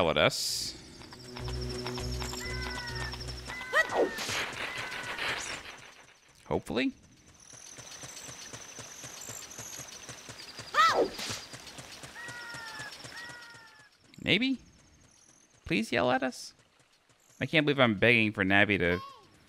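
Light footsteps patter quickly on a dirt path.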